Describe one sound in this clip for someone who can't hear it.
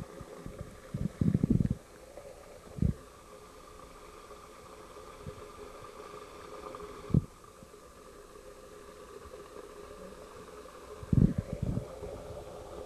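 Water splashes softly as a stick is pulled out of it.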